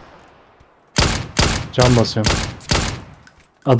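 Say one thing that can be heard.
Rapid gunshots ring out sharply.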